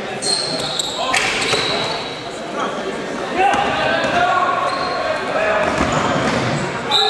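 A basketball bounces on the floor with echoing thuds.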